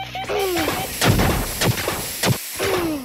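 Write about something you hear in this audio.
An explosion bursts with a hiss of smoke.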